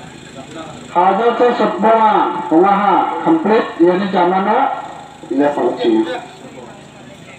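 A man speaks loudly with animation close by.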